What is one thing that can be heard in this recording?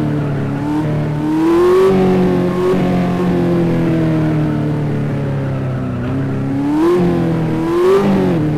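A car engine hums steadily and revs up and down.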